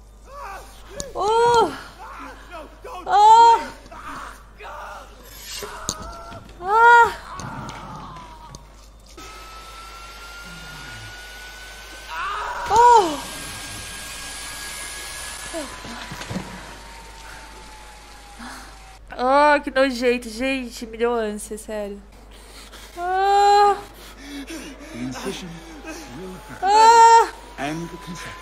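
A young woman screams and shrieks loudly into a microphone.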